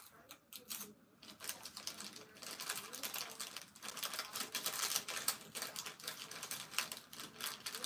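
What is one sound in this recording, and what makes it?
Plastic packaging crinkles as it is handled.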